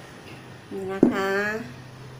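A glass is set down on a table with a light knock.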